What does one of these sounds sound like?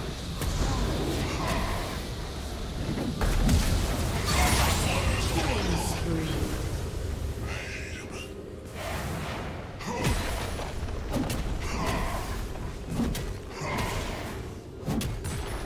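Magic spells whoosh and crackle during a video game battle.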